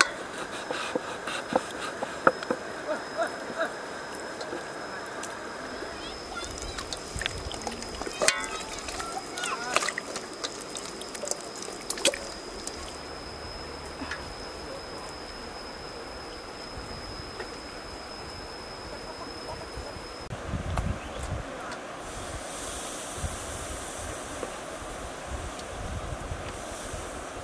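A knife chops through meat onto a wooden board with sharp knocks.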